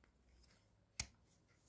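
A folding knife blade clicks into place.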